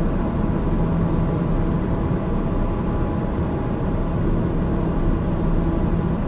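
A turboprop engine drones steadily in cruise, heard from inside the cabin.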